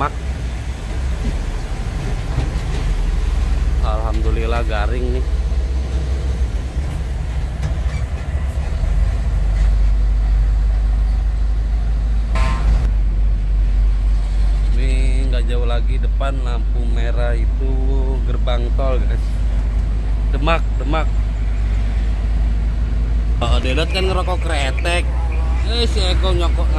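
Tyres hum on the road.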